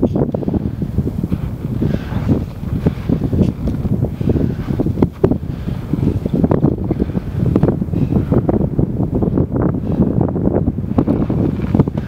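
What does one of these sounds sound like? Crampons crunch on packed snow as climbers step uphill.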